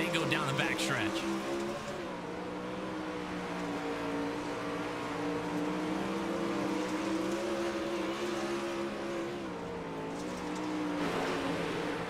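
Racing car engines roar steadily, shifting in pitch.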